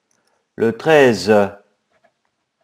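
A middle-aged man speaks briefly and with animation through a webcam microphone.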